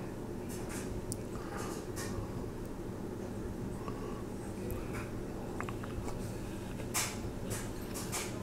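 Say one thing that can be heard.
A man smacks his lips close to the microphone.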